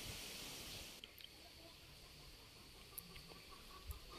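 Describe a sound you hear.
A spoon scrapes against a plate.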